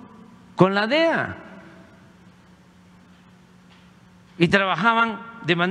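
An elderly man speaks slowly and firmly into a microphone, heard over a loudspeaker in a large room.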